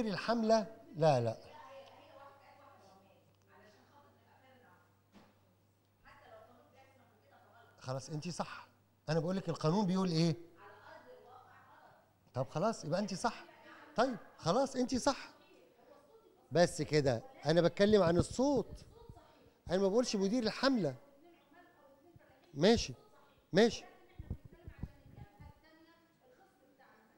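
A man speaks with animation through a microphone in a large echoing hall.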